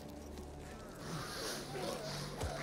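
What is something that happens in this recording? Smoke hisses out in a burst.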